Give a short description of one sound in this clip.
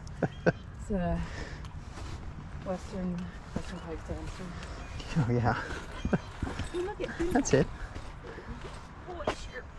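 Footsteps crunch on a dry dirt trail.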